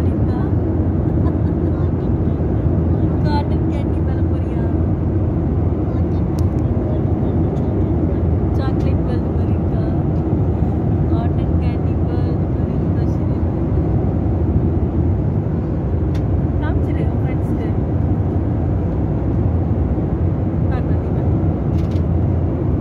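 Aircraft engines drone steadily inside the cabin.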